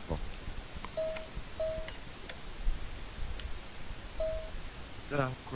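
A short electronic beep sounds a few times.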